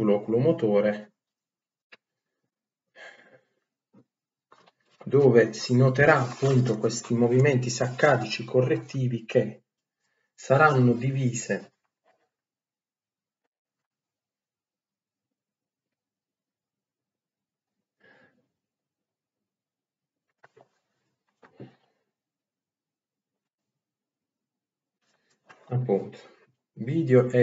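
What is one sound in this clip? A young man talks calmly close to the microphone, in bursts with long pauses.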